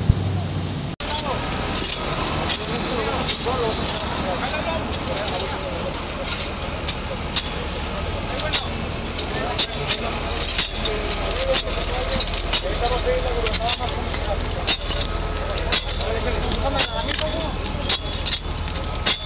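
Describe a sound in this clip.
Rakes and shovels scrape and crunch through gravel.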